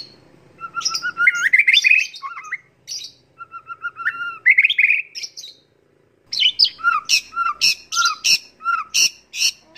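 A songbird sings close by in loud, varied whistling phrases.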